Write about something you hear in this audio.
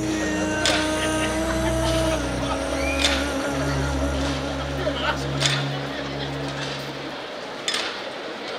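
A large crowd murmurs softly outdoors.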